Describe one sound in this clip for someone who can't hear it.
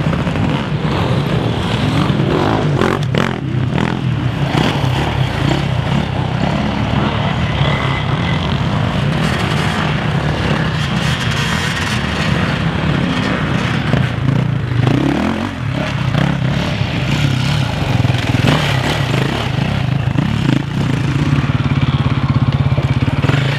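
Dirt bike engines rev and snarl close by, outdoors.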